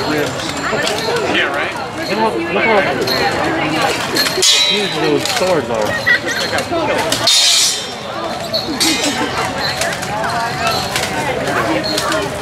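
Metal weapons clang against armour.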